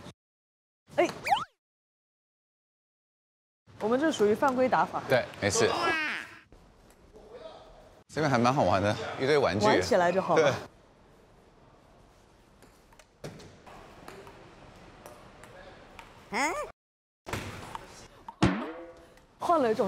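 A ping-pong ball clicks against paddles and the table.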